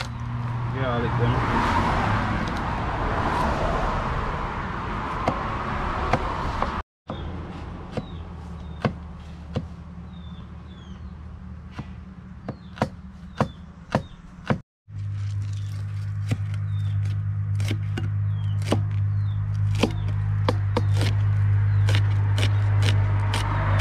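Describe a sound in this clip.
A knife chops on a wooden board in sharp knocks.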